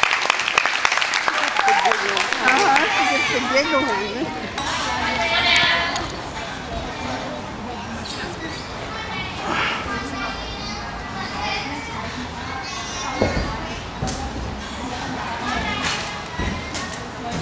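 A crowd of spectators chatters and murmurs in a large echoing hall.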